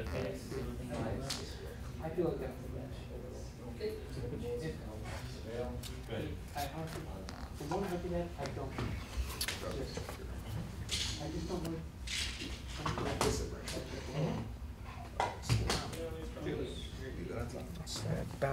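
Playing cards riffle and slap softly as they are shuffled by hand.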